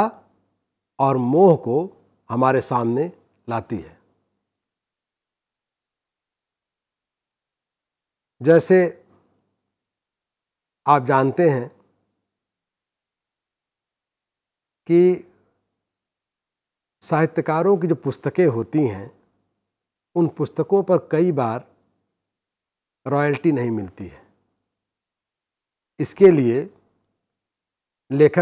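A middle-aged man speaks calmly and deliberately into a close microphone, pausing between phrases.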